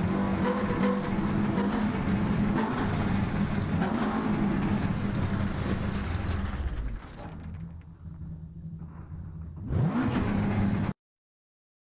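A rally car engine roars at speed, then drops to a low idle.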